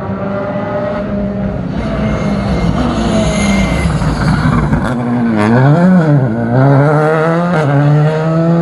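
A rally car engine roars and revs up and down as the car drifts.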